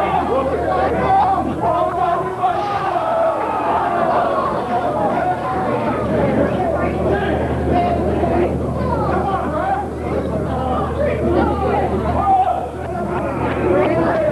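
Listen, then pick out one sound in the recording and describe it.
A crowd shouts and chatters in a large echoing hall.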